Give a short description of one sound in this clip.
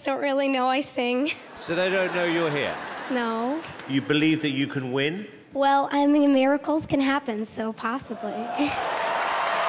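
A young girl speaks into a microphone.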